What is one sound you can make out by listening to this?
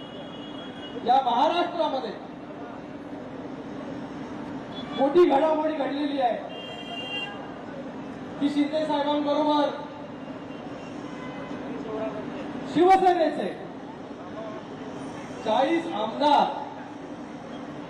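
A young man shouts slogans loudly through a microphone, outdoors.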